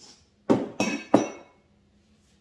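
A spoon scrapes in a bowl in short strokes.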